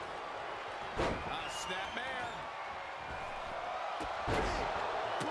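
A body slams hard onto a wrestling mat with a thud.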